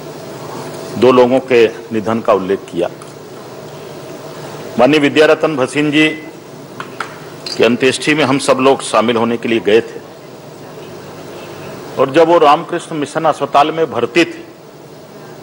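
A man speaks slowly and formally into a microphone, pausing between phrases.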